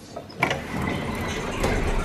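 An elevator door slides.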